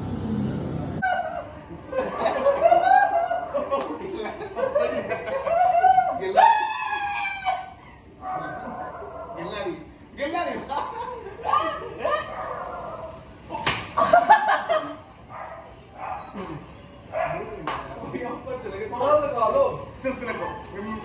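Several young men shout and laugh excitedly.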